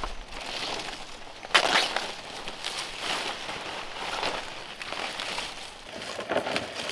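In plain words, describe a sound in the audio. Dry palm leaves rustle and crackle as they are handled.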